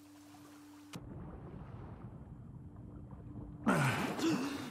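Water rushes and gurgles in a muffled rumble, as if heard underwater.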